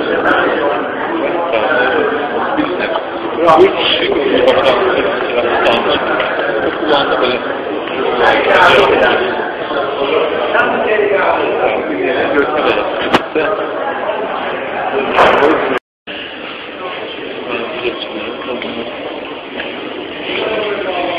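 A crowd of men and women talk and shout all around in a large echoing hall.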